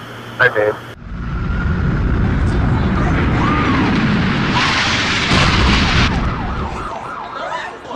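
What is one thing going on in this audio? A jet plane roars loudly overhead.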